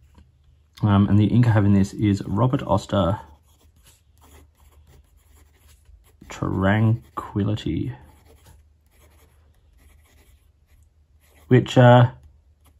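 A fountain pen scratches softly across paper.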